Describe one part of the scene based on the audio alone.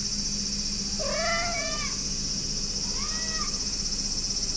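A cat meows softly up close.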